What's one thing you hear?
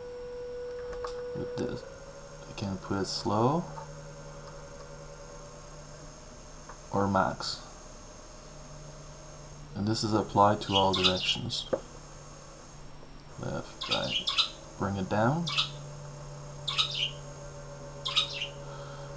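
Small electric motors whir, speeding up and slowing down in short bursts.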